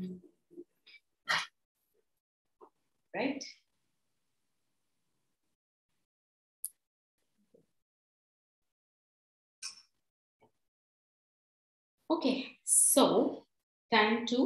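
A woman speaks in short bursts, heard through an online call.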